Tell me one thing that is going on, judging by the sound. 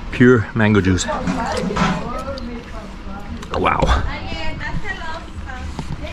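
A man bites and chews juicy fruit with wet smacking sounds.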